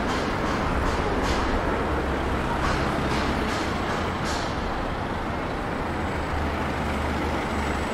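A double-decker bus engine rumbles close by as the bus drives past.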